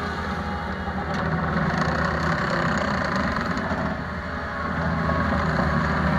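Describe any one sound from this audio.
A diesel engine rumbles steadily close by.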